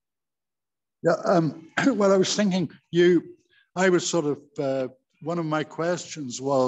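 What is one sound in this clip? An elderly man speaks with animation, heard close through a phone microphone over an online call.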